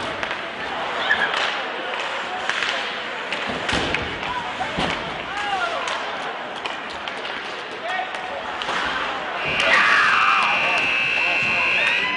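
Skates scrape and sticks clatter on ice in a large echoing rink.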